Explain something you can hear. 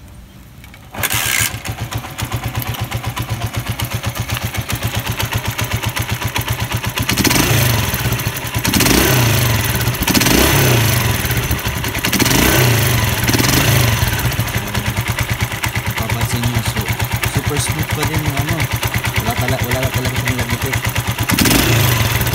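A motorcycle engine starts up and idles with a steady, fast chugging.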